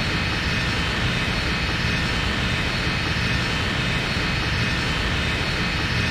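Jet engines roar steadily overhead.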